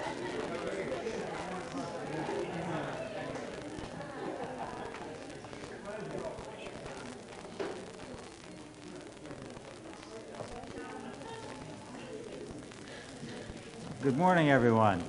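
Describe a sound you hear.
Several people murmur quietly in the distance.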